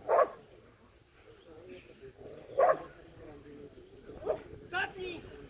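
A dog barks sharply outdoors.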